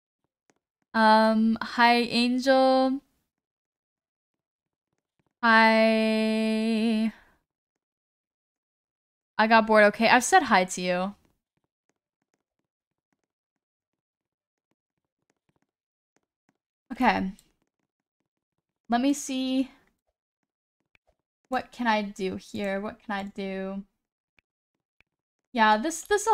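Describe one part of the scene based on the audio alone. A young woman speaks and sings in bursts, close to a microphone, with animation.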